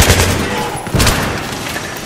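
Glass and debris shatter and scatter.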